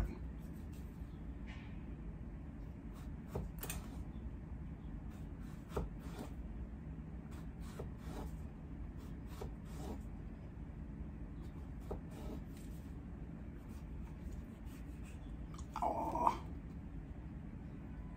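A knife chops on a wooden cutting board with soft, uneven knocks.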